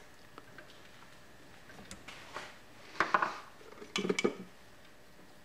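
A metal chuck key clicks and rattles as a chuck is tightened.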